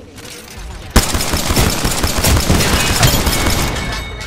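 A gun fires in quick bursts.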